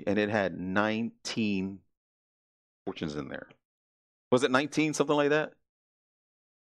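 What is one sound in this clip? A middle-aged man speaks calmly into a headset microphone, pausing between phrases.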